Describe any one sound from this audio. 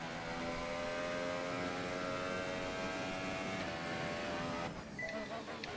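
A racing car engine whines at high revs.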